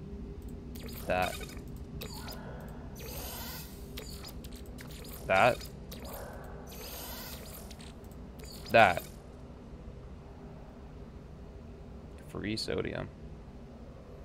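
Short electronic chimes sound as menu items are picked.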